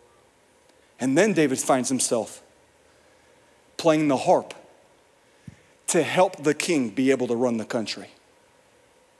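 A young man speaks calmly through a microphone in a large hall, pausing between phrases.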